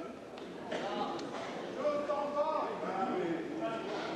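A man shouts instructions to the fighters.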